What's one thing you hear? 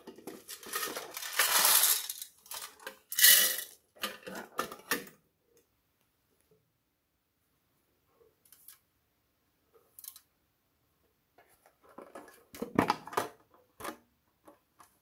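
Hands handle a plastic tin lid with crinkly, rattling sounds.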